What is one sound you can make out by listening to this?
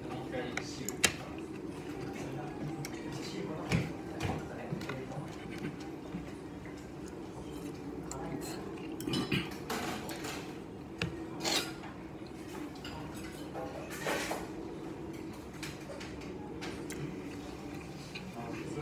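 Chopsticks click against a dish.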